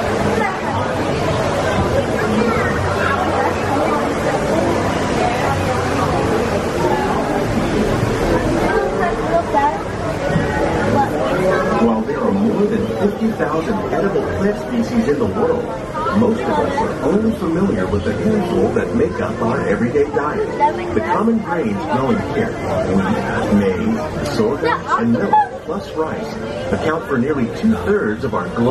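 A crowd of adults and children chatters nearby.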